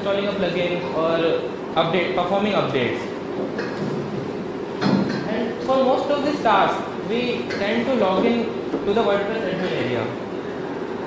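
A young man speaks calmly into a microphone, heard through loudspeakers in a large room.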